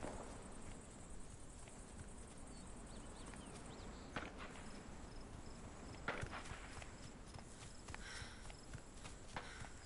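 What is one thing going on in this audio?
Footsteps run over grass and dirt.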